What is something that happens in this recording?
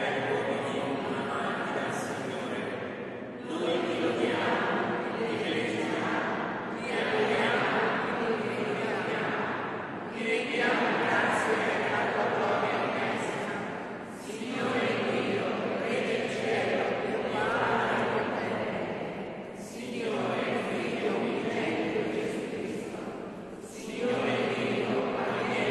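A choir of men and women sings in phrases, echoing through a large hall.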